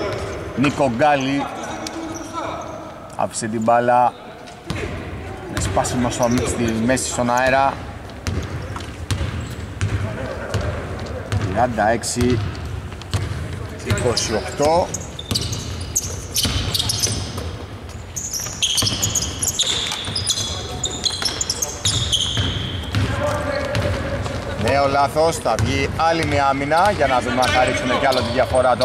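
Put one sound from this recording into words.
Basketball shoes squeak on a hardwood court in a large echoing hall.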